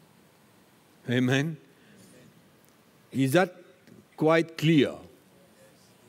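An older man speaks slowly and deliberately through a microphone, with long pauses.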